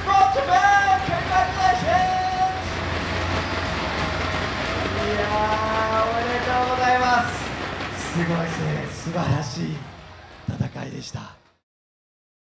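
A large crowd cheers and shouts loudly in a big echoing hall.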